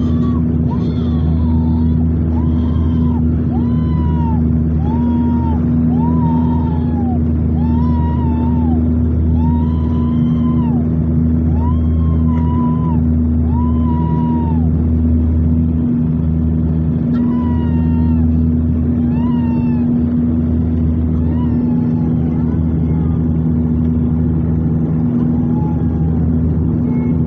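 A propeller aircraft engine drones loudly and steadily.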